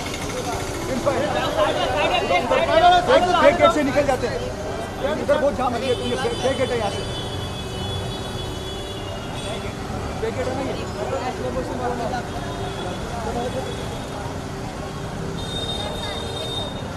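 A crowd of young men shout and chatter excitedly close by.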